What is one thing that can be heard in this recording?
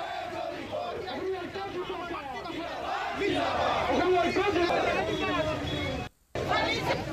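A man speaks forcefully into microphones outdoors.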